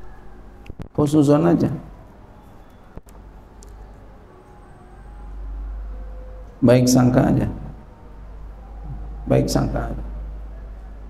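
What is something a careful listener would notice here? A man speaks calmly into a microphone in short phrases, with pauses between them, in an echoing room.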